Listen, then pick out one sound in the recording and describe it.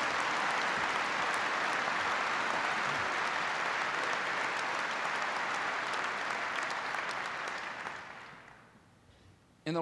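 A large crowd applauds loudly in a big echoing hall.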